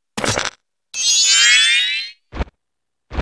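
A fairy's high chime twinkles.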